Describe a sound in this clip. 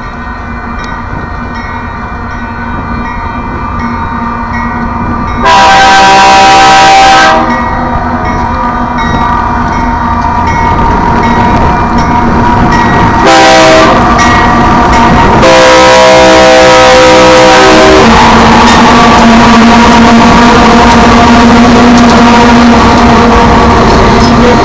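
A railway crossing bell rings steadily.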